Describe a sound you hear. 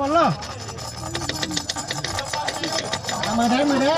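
Several young men talk and laugh close by.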